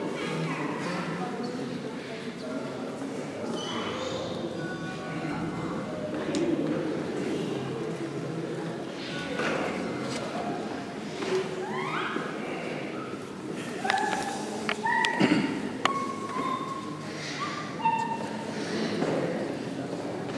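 A crowd of adults murmurs and chats in a large echoing hall.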